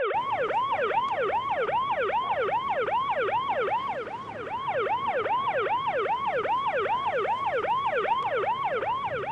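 A police siren wails rapidly and steadily close by.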